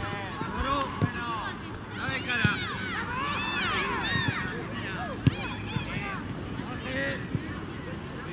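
A football is kicked.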